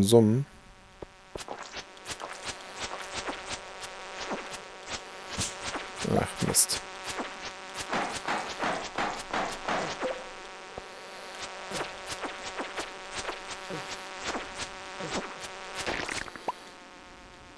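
Pickaxe blows crack against rock again and again in a game.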